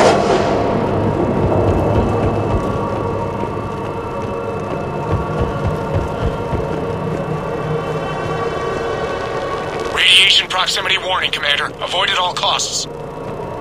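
Heavy armoured footsteps thud on a metal floor.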